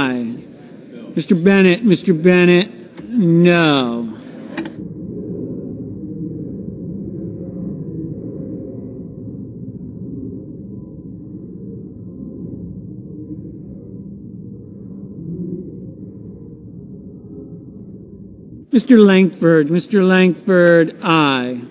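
A man calls out clearly over a microphone in a large echoing hall.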